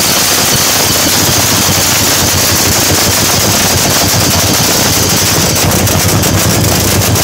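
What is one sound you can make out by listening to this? A supercharged nitro funny car engine runs with a harsh, crackling roar.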